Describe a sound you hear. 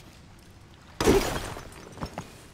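A hammer strikes rock with a heavy crunch.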